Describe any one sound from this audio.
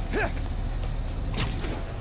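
Electric sparks crackle and snap.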